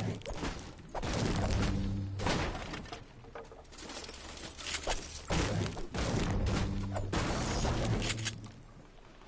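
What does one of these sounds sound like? A treasure chest opens with a bright, shimmering chime.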